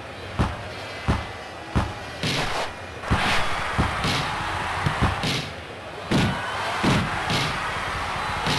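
A ball is kicked with sharp thumps again and again.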